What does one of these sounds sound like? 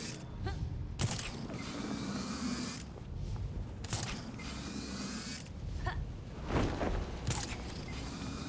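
A grappling line zips sharply with a whoosh.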